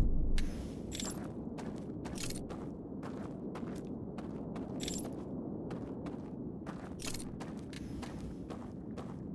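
Footsteps tread steadily over rough ground.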